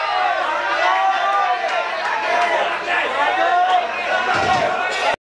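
A rock band plays loudly in a hall.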